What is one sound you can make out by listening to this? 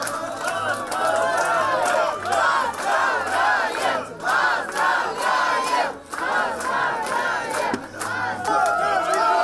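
A crowd of men and women cheers and chants loudly nearby, echoing in a large hall.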